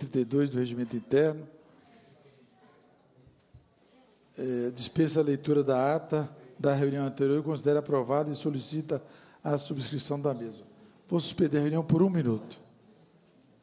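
A man speaks calmly into a microphone, heard over a loudspeaker.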